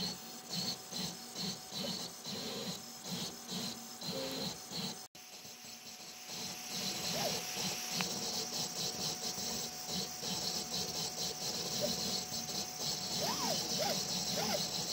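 A small cooling fan hums steadily.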